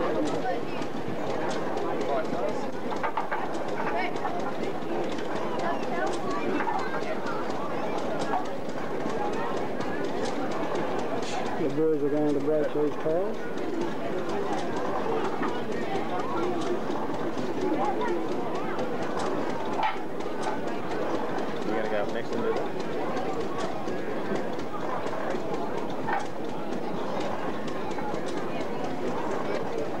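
A man speaks through a loudspeaker outdoors.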